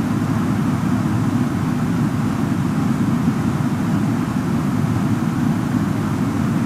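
Jet engines drone steadily with a low rumble of air rushing past a cockpit.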